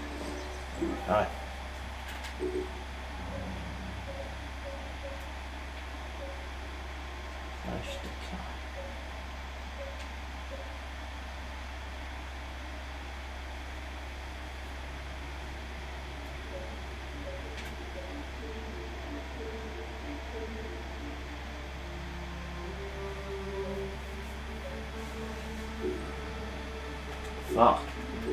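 A man speaks briefly and quietly close to a microphone.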